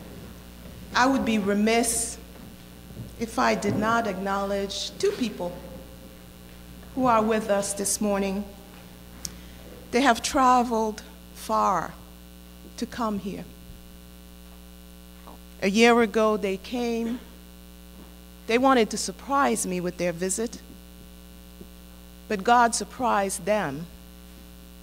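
A woman speaks slowly and calmly into a microphone, with pauses between phrases, in a room with a slight echo.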